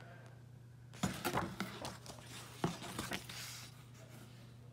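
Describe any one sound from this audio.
Cardboard and paper rustle and scrape as a booklet is pulled from a box.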